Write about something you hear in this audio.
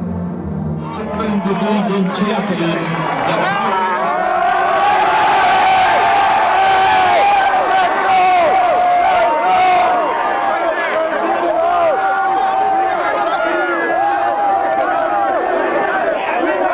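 A crowd of young men shouts and cheers loudly close by.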